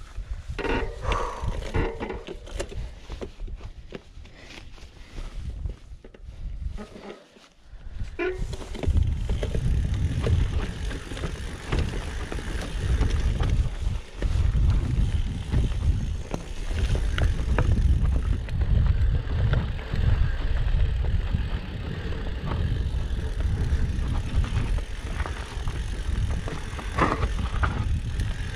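Bicycle tyres crunch and rattle over rocky ground.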